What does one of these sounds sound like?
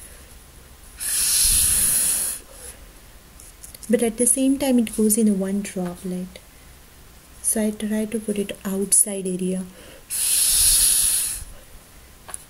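Breath blows in bursts through a drinking straw.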